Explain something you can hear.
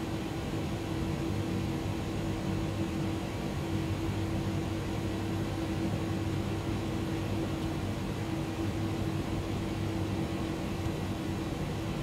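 Jet engines hum steadily with a low drone.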